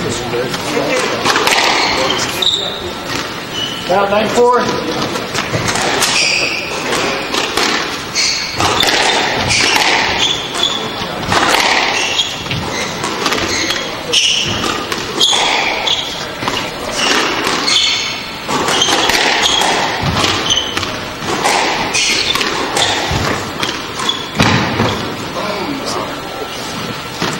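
A squash ball smacks off rackets and walls with sharp echoing hits.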